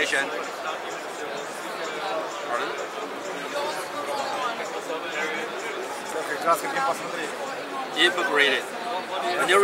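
Many people chatter in the background of a busy, echoing hall.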